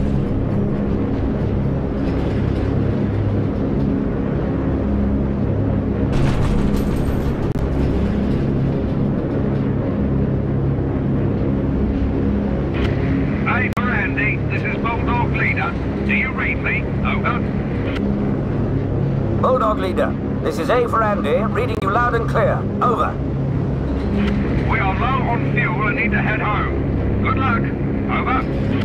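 Aircraft engines drone steadily and loudly.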